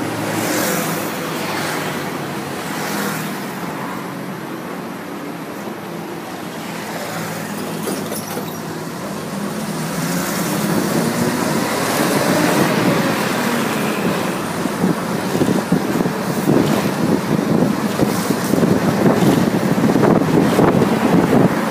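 Cars swish past close by.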